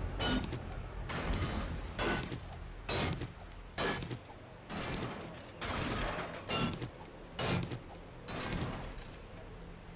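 A stone axe strikes rubble and wood with dull, repeated knocks.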